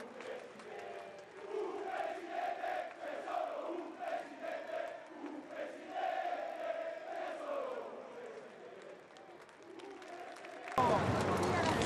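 A large crowd chants in unison outdoors.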